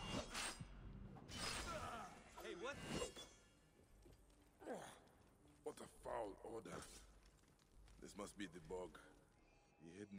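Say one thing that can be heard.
Blades swoosh and clash in a close fight.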